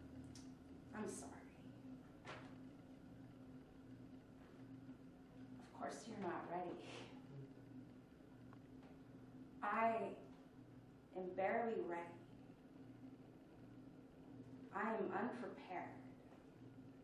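A young woman speaks with pauses in a room.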